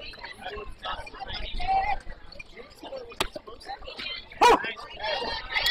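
Young players call out and chatter around an outdoor field.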